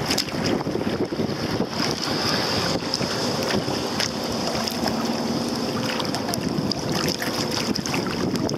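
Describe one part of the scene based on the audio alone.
Choppy water slaps against a plastic kayak hull.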